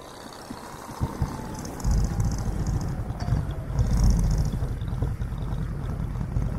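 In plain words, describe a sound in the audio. A motorcycle engine rumbles close by, growing louder.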